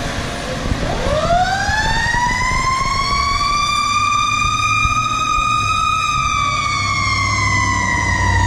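A siren rises and wails loudly.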